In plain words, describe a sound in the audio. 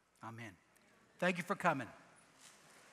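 A man speaks calmly through a headset microphone.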